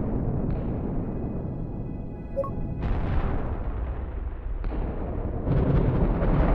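A deep explosion rumbles and roars on.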